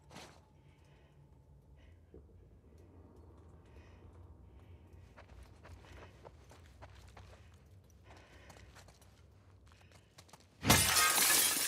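Footsteps walk slowly indoors.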